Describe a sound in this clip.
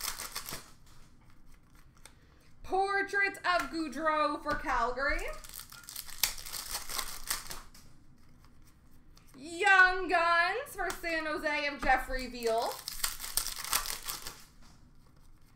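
Plastic-wrapped card packs crinkle and rustle in someone's hands.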